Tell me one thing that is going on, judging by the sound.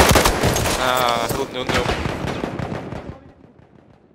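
An explosion roars loudly and rumbles away.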